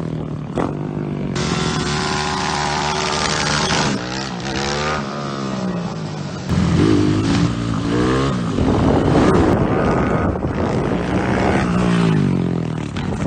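A motorcycle engine revs loudly, rising and falling in pitch.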